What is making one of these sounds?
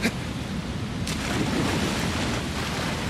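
A person splashes into water.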